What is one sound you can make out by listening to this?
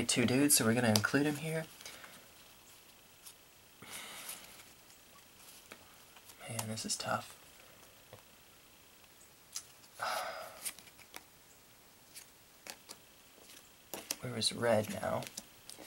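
Playing cards slide and tap softly on a cloth mat.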